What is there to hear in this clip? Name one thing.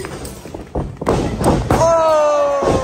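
A metal chair slams loudly onto a wrestler.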